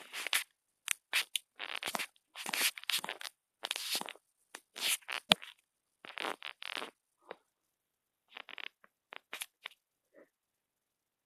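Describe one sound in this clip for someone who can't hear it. A young man whispers close to a microphone.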